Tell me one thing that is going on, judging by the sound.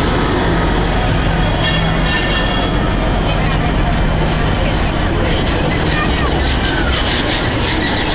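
A fire truck's engine rumbles as it passes close by and pulls away.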